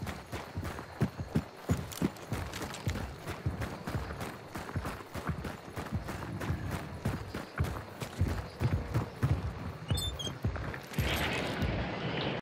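Footsteps crunch steadily over gravel and dirt.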